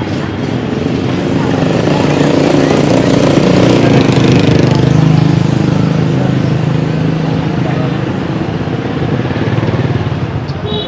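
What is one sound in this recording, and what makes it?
Motorbike engines hum as they ride past close by.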